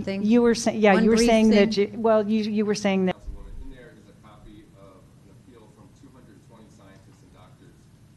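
A middle-aged woman speaks calmly through a microphone.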